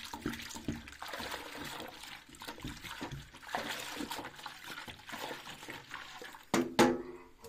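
A spoon stirs and scrapes in a metal pot of liquid.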